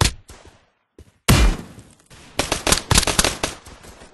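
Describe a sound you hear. A rifle's empty magazine is pulled out and a fresh one clicks into place.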